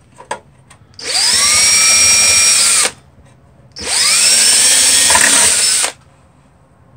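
A cordless drill whirs loudly in short bursts, quickly speeding up each time.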